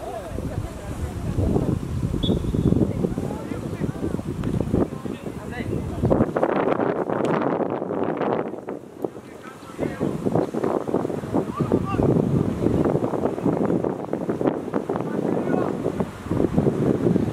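Wind buffets loudly across an open outdoor space.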